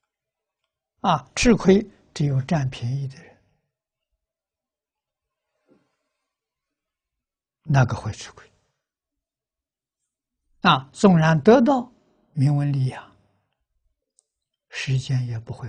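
An elderly man speaks calmly through a clip-on microphone, in short phrases with pauses.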